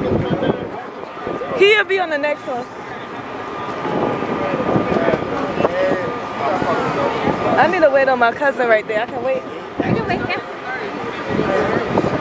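A crowd of men and women chat outdoors close by.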